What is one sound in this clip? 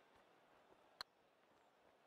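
A golf club strikes a ball with a short click.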